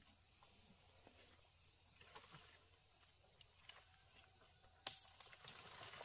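A wooden log scrapes and knocks against branches as it is dragged.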